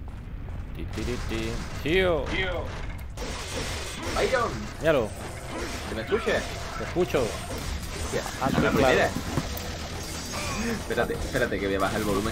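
Swords clash and slash in a fast game fight.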